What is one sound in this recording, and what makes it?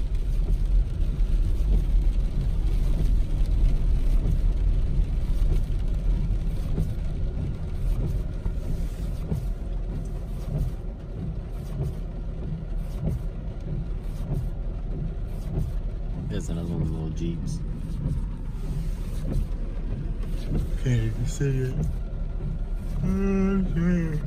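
Rain patters on a windshield.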